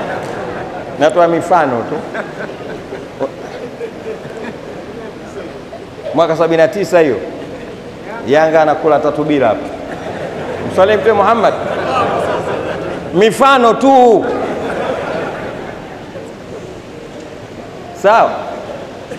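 A man chants melodic phrases through a microphone, echoing in a large room.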